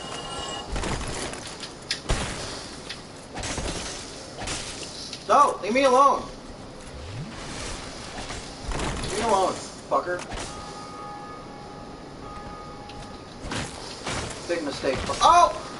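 Metal weapons clash and clang in a fight.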